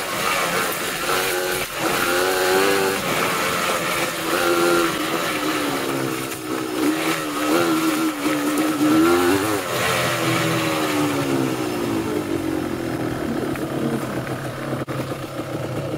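A motorcycle engine hums and its pitch rises and falls as it rides.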